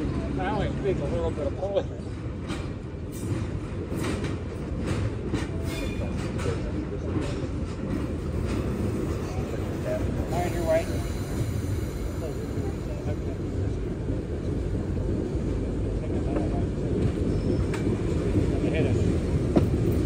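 Steel wheels clank and squeal on the rails.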